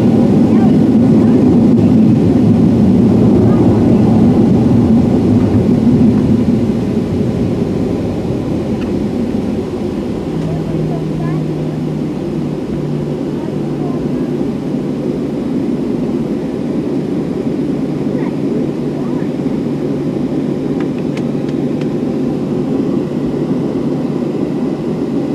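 Jet engines roar steadily in a loud rumble from inside an airliner cabin, easing off after a few seconds.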